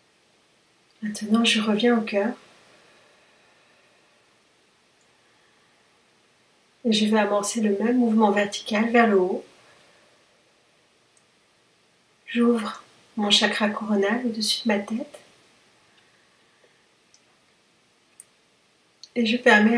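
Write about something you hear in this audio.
A woman speaks calmly in short phrases with pauses, close to the microphone.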